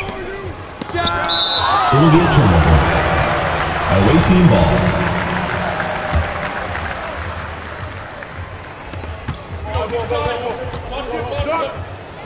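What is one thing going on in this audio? A crowd cheers in a large hall.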